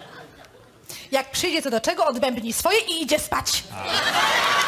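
A woman speaks brightly through a microphone.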